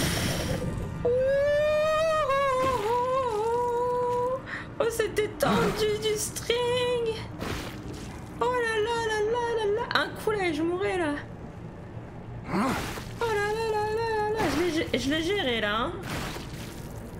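A young woman speaks and sings in a drawn-out voice close to a microphone.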